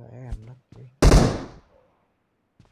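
A grenade bursts with a loud boom.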